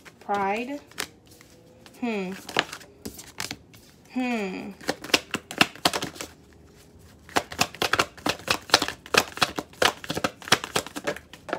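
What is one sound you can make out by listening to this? Playing cards are shuffled by hand, with quick flicking and tapping.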